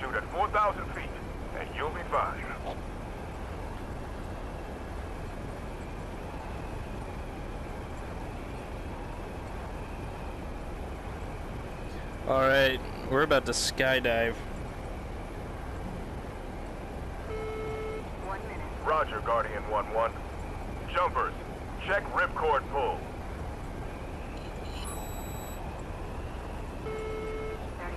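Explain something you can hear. Wind rushes through an open cargo door.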